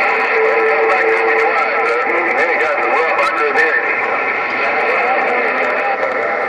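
A transmission crackles with static through a two-way radio's loudspeaker.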